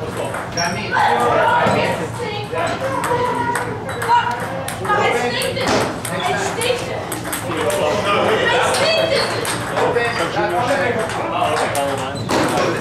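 Ping-pong balls click sharply against paddles and tables.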